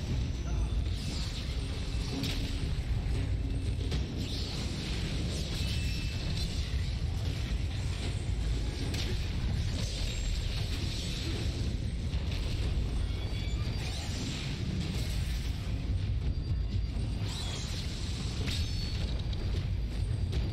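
A blade swishes through the air in quick swings.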